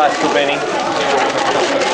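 A plastic bag rustles and crinkles.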